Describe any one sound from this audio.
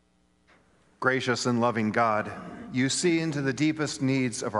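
A man chants in a steady sung voice through a microphone.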